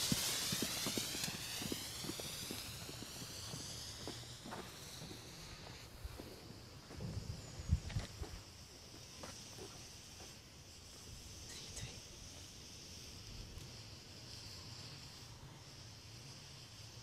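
A firework fountain hisses and sprays sparks steadily outdoors.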